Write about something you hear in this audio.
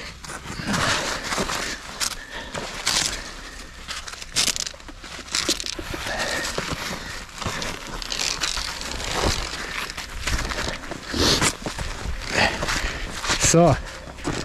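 Clothing rustles with a climber's movements, close by.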